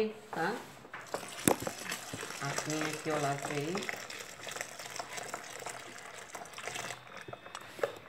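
Water pours and splashes into a tub from a bowl.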